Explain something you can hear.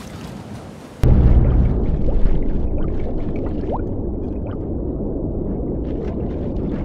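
Water rumbles deep and muffled, as if heard underwater.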